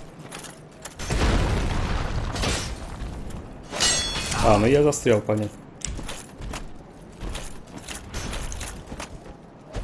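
A large creature lands with heavy thuds.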